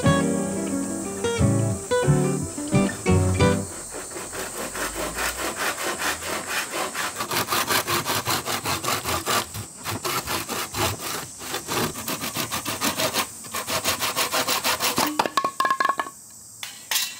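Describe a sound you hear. A hand saw cuts through bamboo with quick, rhythmic strokes.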